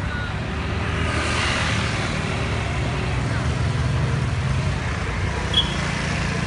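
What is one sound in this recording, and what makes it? A crowd murmurs nearby outdoors.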